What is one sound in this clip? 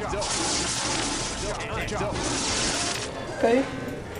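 Electric lightning crackles and hisses.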